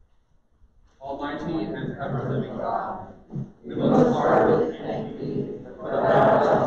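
A man chants in a large echoing room.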